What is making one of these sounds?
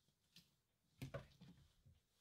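A glass bottle knocks down onto a hard counter.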